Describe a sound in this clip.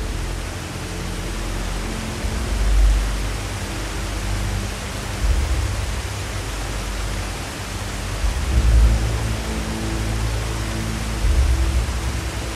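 Rushing water roars steadily as rapids crash over rocks.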